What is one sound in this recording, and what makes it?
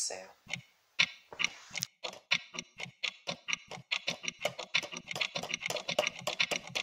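An alarm clock ticks rapidly and steadily.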